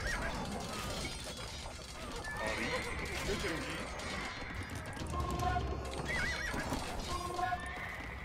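Swords clash and soldiers fight in a small battle.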